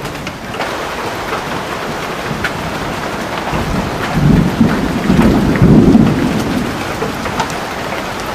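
Rain patters steadily on the ground.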